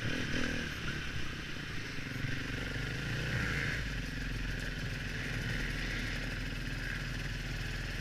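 Other dirt bike engines drone ahead.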